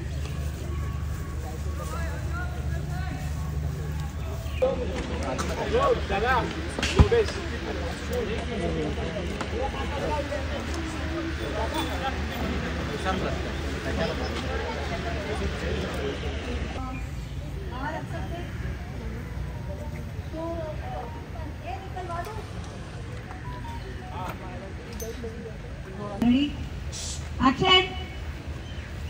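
A crowd of men and women chatter nearby outdoors.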